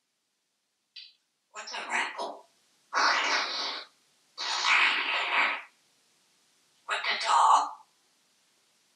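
A parrot squawks loudly in short, harsh bursts.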